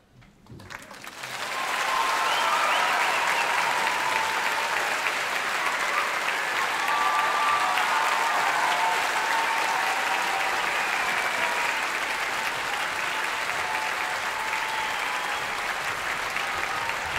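A large audience applauds and cheers loudly.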